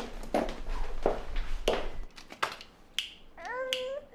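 A baby babbles softly.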